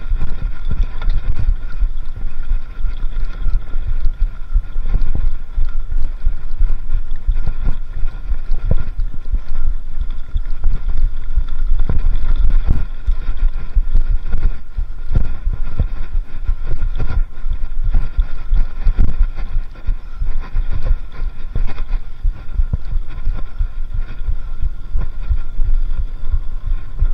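A bicycle rattles and clatters over a bumpy dirt trail.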